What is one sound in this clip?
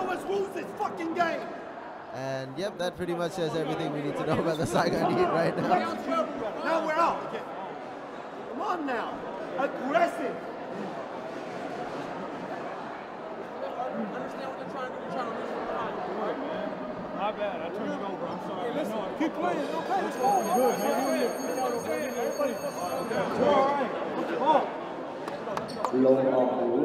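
A man talks urgently and close by.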